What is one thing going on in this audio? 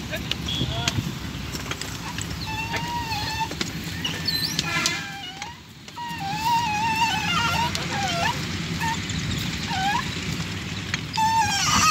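A wooden ox cart's wheels creak and squeak as the cart rolls.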